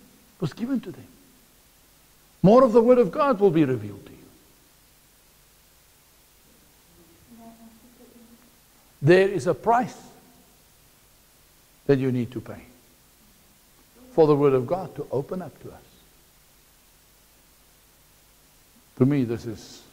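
A middle-aged man speaks with animation through a lapel microphone, in bursts with pauses.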